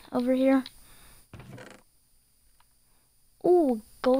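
A wooden chest creaks open.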